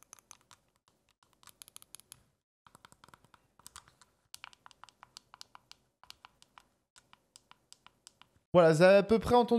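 Buttons on a handheld game controller click rapidly.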